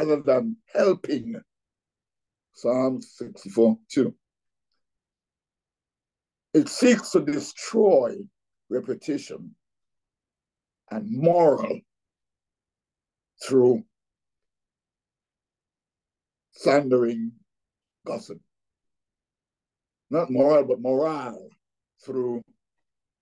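An elderly man speaks calmly with pauses, heard through an online call.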